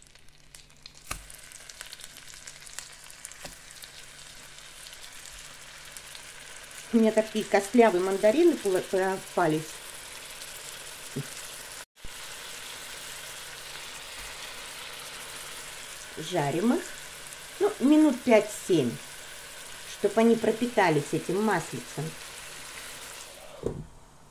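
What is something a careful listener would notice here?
Wet fruit pieces sizzle in hot oil in a frying pan.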